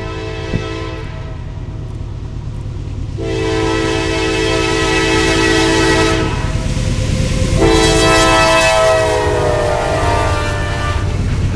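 A train horn blows loudly in long blasts as a train approaches.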